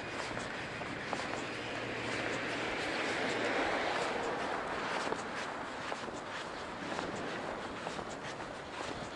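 Wind rushes steadily past while moving along outdoors.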